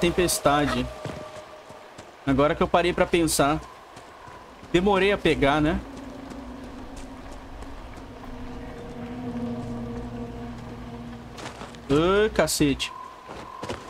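Footsteps crunch on a rocky path.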